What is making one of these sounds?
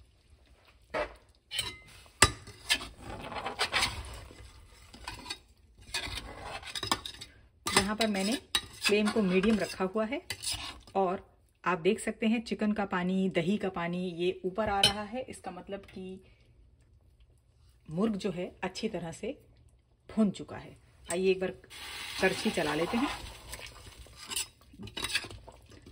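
A metal spatula scrapes and stirs inside a pot.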